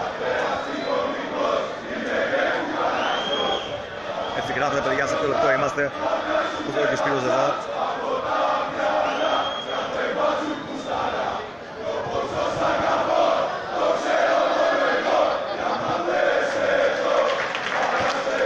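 A stadium crowd murmurs and chatters throughout.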